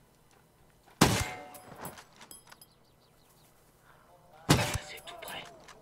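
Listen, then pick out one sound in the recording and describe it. A rifle fires two loud shots, each with a short echoing tail.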